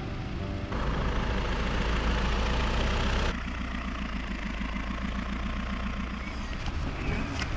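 A car engine hums as the car rolls up and stops.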